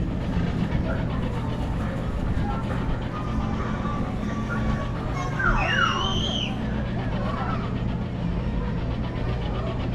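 A carnival ride's motor hums steadily as the ride spins.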